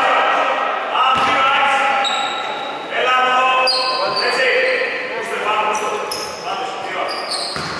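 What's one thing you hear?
Basketballs bounce on a wooden floor in an echoing hall.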